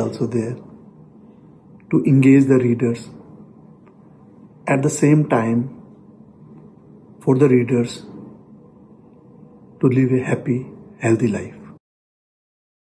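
A middle-aged man speaks calmly in short phrases over an online call.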